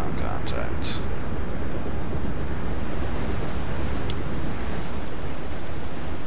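Waves splash at the water's surface.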